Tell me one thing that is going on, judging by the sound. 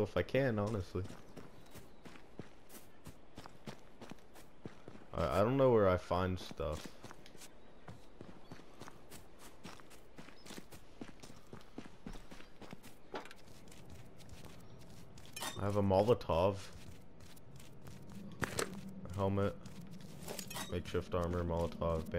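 Footsteps tread steadily over grass and hard ground.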